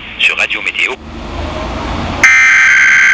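A radio receiver hisses with static.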